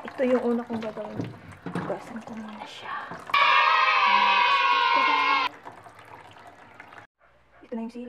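Water runs from a tap and splashes onto a hard surface.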